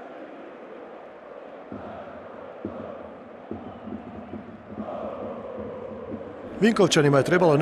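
A large stadium crowd murmurs and cheers in the distance.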